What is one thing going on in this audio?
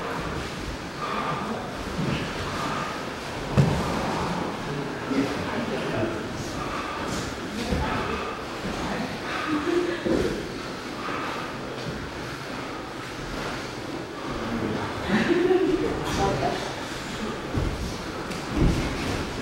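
Fabric rustles as grapplers grip and pull at each other's clothes.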